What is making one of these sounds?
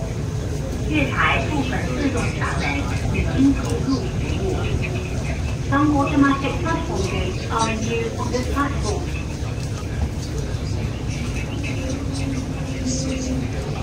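A train slows and brakes as it pulls into a station.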